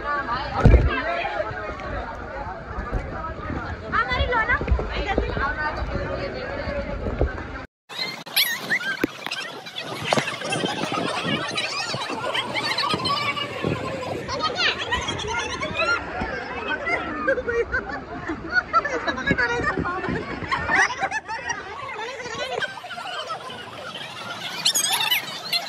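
Water splashes and rushes around inflatable rings.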